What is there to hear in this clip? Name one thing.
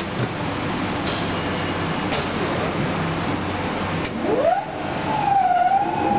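A machine button clicks as it is pressed.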